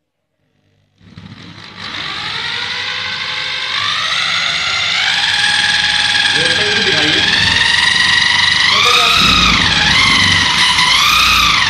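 An electric drill spins a motor with a high whine that rises and steadies.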